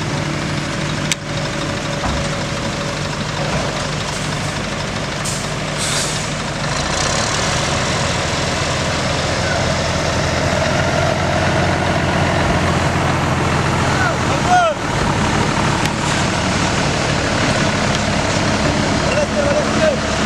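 A heavy diesel engine idles with a low, steady rumble.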